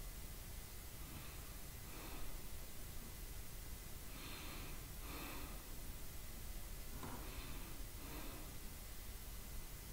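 A young man speaks quietly and briefly close to a microphone.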